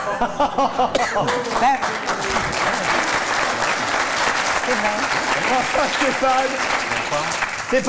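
A studio audience laughs loudly.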